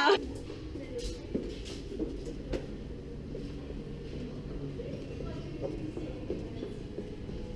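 Footsteps walk across a hard floor indoors.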